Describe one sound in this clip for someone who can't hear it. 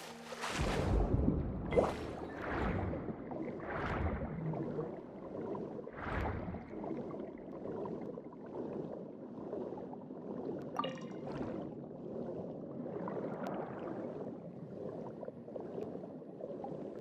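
Water swooshes in bursts as a swimmer strokes underwater.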